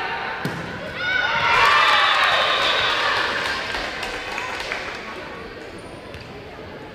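A crowd cheers and shouts loudly, then fades.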